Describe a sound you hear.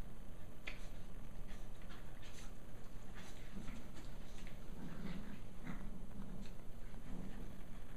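Dog paws scuffle on carpet.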